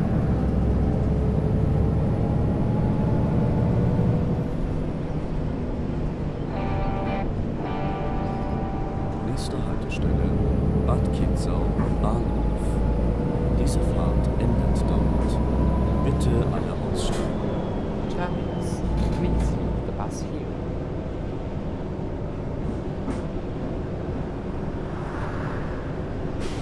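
A bus engine drones and whines steadily, rising and falling in pitch.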